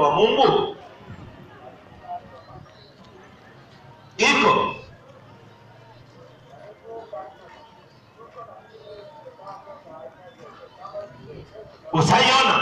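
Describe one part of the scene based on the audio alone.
A crowd murmurs and chatters in the background outdoors.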